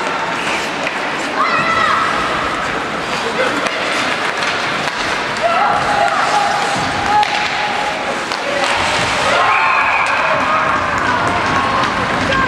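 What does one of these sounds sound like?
Hockey sticks click against a puck.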